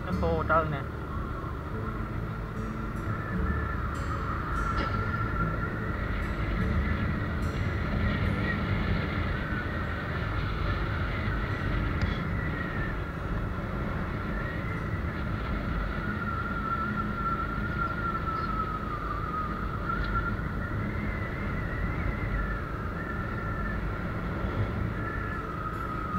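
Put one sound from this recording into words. Wind buffets the microphone while moving along a road.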